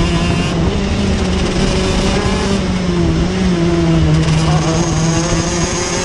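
A kart engine buzzes loudly close by, its pitch wavering with the throttle.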